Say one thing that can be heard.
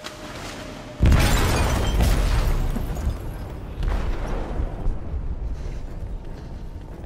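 A loud explosion booms and then rumbles as it fades.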